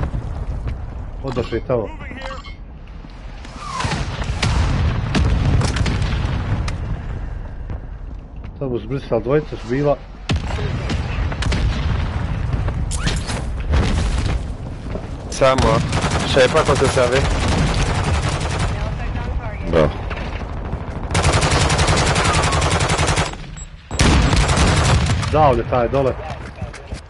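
A sniper rifle fires loud single shots.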